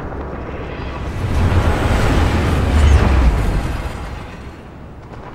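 A large craft roars past overhead, swelling and then fading.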